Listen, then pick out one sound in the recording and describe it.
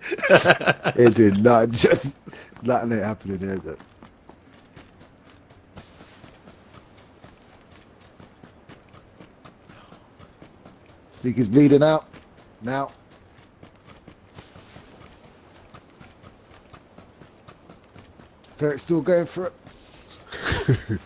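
Footsteps crunch quickly over grass and dirt.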